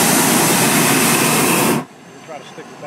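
A hot air balloon burner roars loudly close by, then cuts off.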